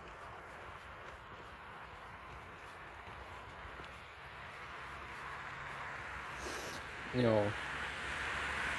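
Wind rushes against the microphone outdoors.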